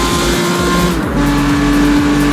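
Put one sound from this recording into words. A car engine dips briefly in pitch as the gear changes.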